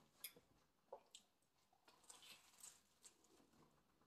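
A man bites into a sandwich with a crunch.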